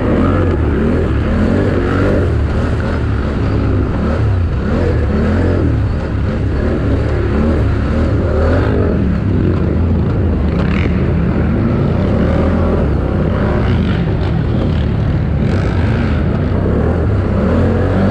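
A dirt bike engine revs and roars loudly up close, rising and falling in pitch.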